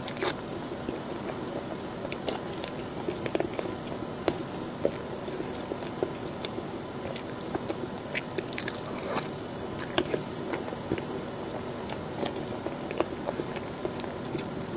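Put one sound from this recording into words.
A young woman chews soft cake close to a microphone with wet, smacking sounds.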